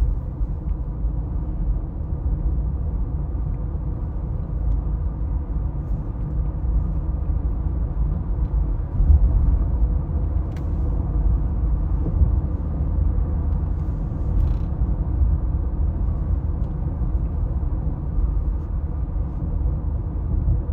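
Tyres rumble steadily on the road from inside a moving car.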